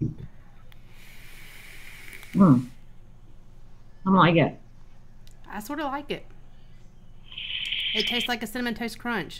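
A woman exhales a puff of vapour with a soft hiss.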